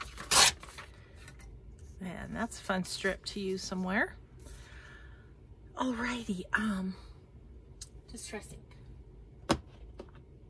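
Paper rustles and slides softly under hands.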